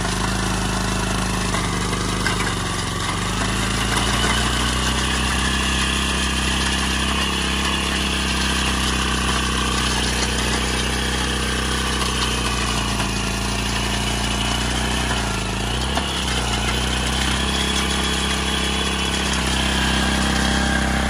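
A rotary tiller churns and scrapes through dry soil.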